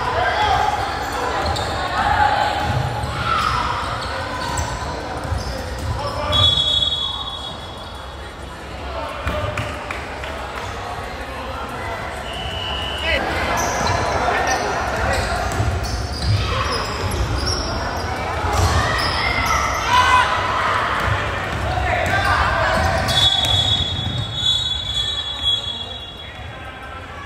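A crowd of spectators chatters and cheers in the background.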